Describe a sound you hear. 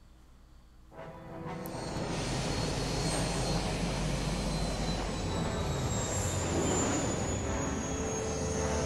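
A spaceship's engines roar steadily as it lifts off.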